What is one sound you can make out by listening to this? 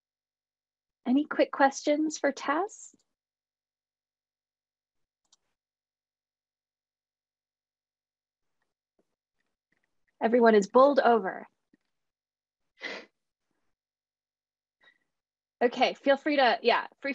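A young woman speaks calmly over an online call.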